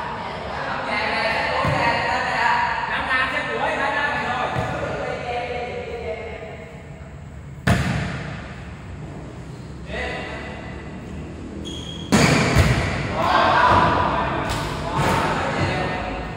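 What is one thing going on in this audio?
Young men call out and talk loudly across an echoing hall.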